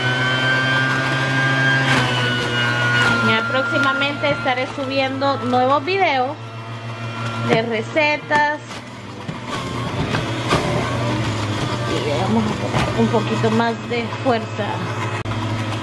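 A juicer motor whirs steadily while it grinds vegetables.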